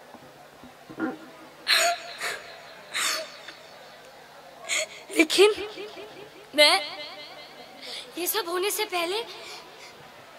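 A young woman speaks expressively into a microphone over loudspeakers, in bursts with pauses.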